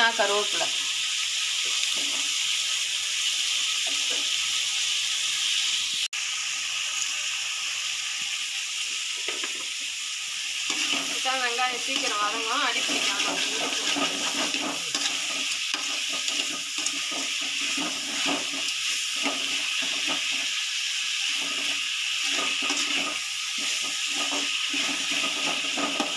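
A metal spatula scrapes and clatters against a metal pan.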